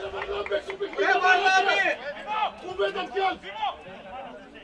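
Men shout and argue loudly nearby, outdoors.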